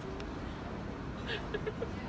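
A woman laughs joyfully.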